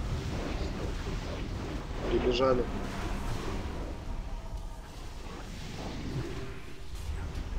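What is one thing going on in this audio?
Magic spells crackle and whoosh in a busy game battle.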